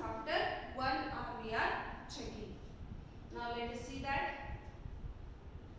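A woman speaks clearly into a close microphone.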